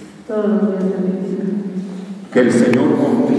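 A young woman speaks slowly and clearly into a microphone in a large echoing hall.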